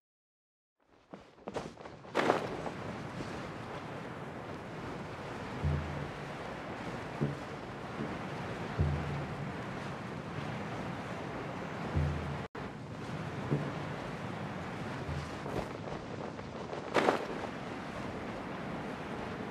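Wind rushes steadily past a gliding figure.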